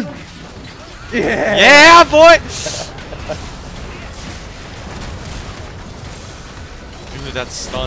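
Magic spells whoosh and crackle during a battle.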